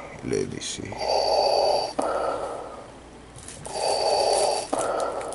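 A man speaks softly close to the microphone.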